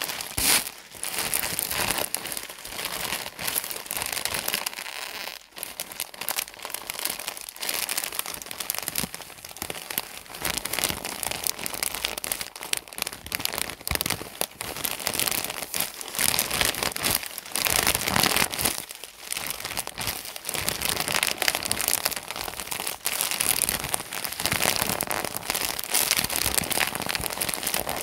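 Hands crinkle and rustle a plastic package up close, steadily.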